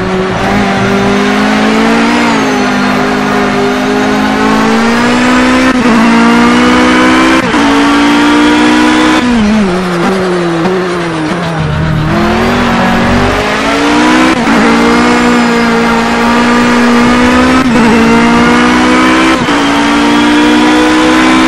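A racing car engine roars at high revs, shifting up through the gears with brief dips.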